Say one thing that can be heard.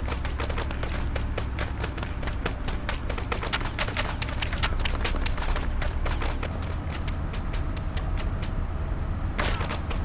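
A worker rustles and taps at the grass.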